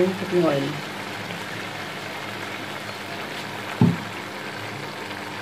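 Minced meat sizzles softly in a pan.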